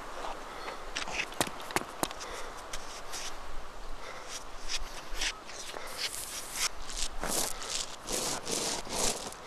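Leaves and branches rustle as someone pushes through dense bushes.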